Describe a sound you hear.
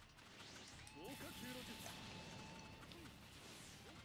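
A fireball whooshes and roars.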